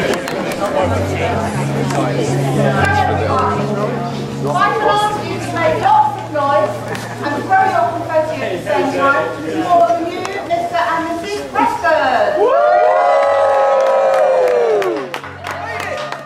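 A crowd of men and women chatter and call out nearby outdoors.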